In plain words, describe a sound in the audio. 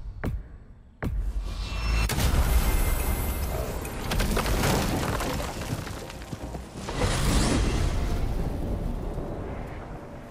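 A magical gateway roars open with a loud rushing whoosh.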